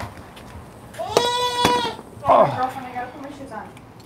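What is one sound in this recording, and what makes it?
A baby squeals in a high voice close by.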